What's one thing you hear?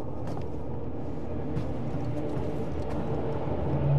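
A heavy metal door slides open with a mechanical whir.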